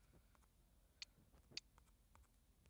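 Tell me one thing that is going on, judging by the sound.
Short electronic blips sound as a game menu cursor moves.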